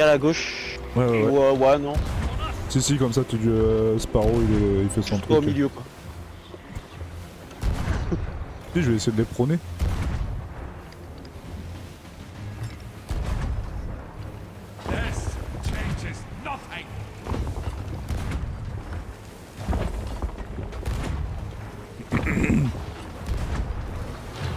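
Cannons fire with deep booms.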